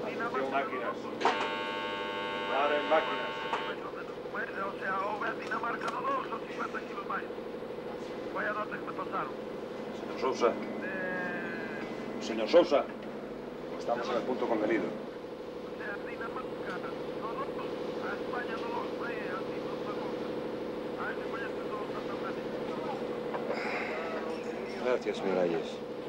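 A ship's engine drones.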